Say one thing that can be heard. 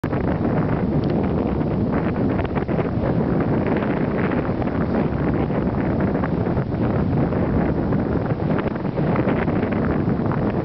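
Strong wind rushes and buffets steadily past the microphone.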